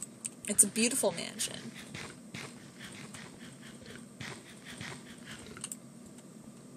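A game character munches on an apple with quick crunching bites.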